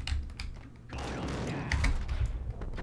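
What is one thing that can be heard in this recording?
A shotgun fires loudly in an echoing tunnel.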